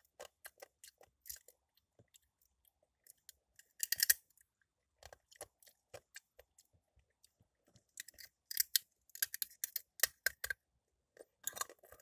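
Hard plastic clicks and crinkles close by.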